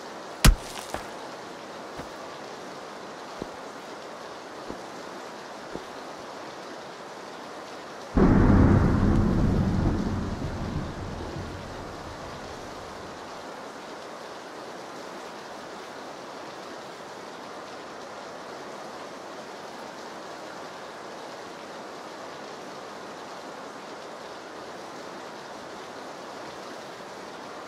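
Steady rain patters outside.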